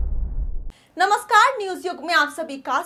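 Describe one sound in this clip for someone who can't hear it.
A young woman speaks clearly and calmly into a microphone.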